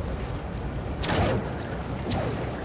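Web lines shoot out with sharp thwips.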